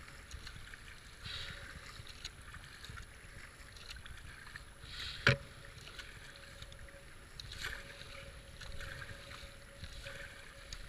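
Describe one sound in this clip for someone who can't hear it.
Fast river water rushes and gurgles around a kayak.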